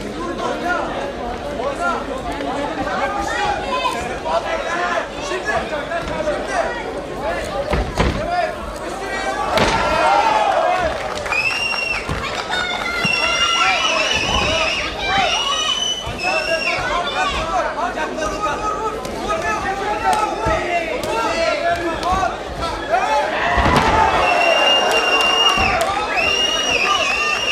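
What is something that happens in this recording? A crowd of men shouts and cheers loudly throughout.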